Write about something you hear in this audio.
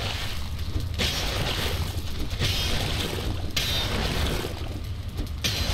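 A pickaxe strikes rock again and again.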